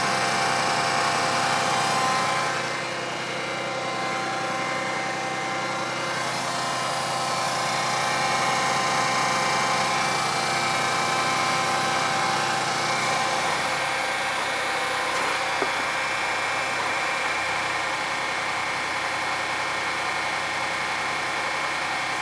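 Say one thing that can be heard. A tractor engine idles steadily close by.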